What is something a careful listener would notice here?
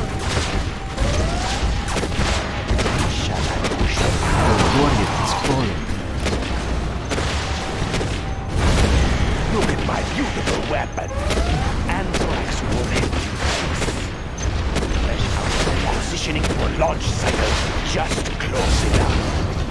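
Explosions boom and crackle in a battle.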